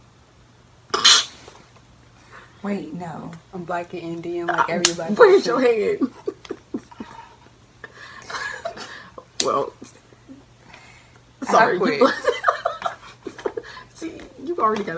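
Young women laugh loudly.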